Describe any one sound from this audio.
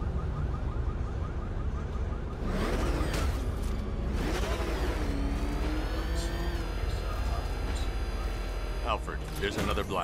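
A powerful car engine roars steadily.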